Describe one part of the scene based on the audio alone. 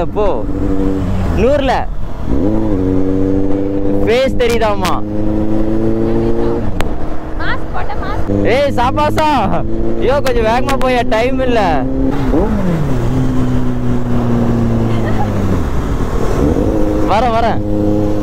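Another motorcycle engine revs close by.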